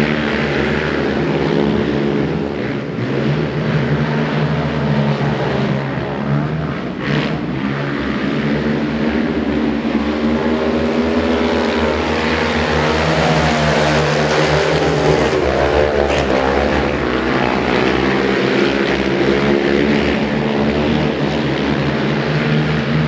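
Several racing quad bike engines roar and rev loudly around an outdoor track, rising and falling in pitch.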